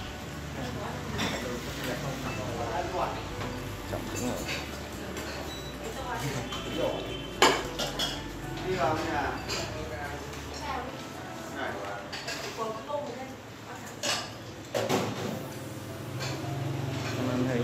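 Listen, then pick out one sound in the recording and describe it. Several men and women talk nearby.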